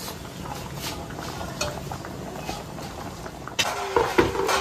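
Water bubbles at a rolling boil in a pot.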